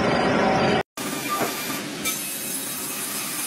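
A saw hums while cutting through a thick timber slab.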